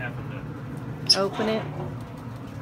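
A metal grill lid clanks shut.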